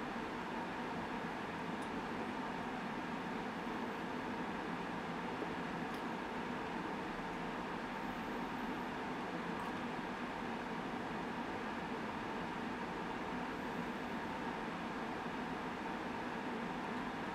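A young woman sips a drink quietly.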